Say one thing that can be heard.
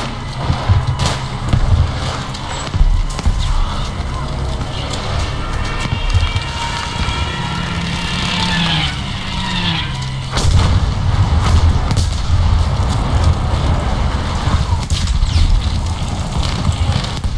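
Gunfire cracks in sharp bursts.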